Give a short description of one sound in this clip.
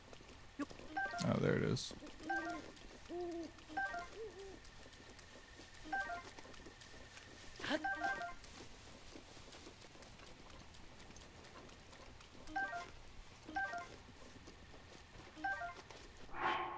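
Short chimes ring out as items are picked up in a video game.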